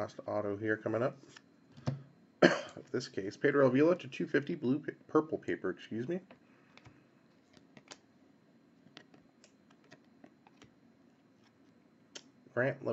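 Trading cards rustle and slide against each other as they are flipped through by hand.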